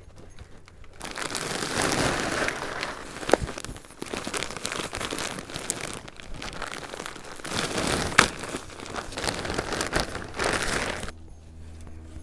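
Potting soil pours and rustles out of a plastic bag.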